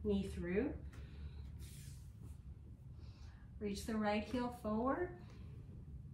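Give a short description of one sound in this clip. A woman speaks calmly through a close microphone.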